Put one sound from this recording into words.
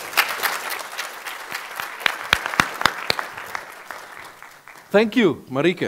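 An audience applauds in a large hall and the clapping fades.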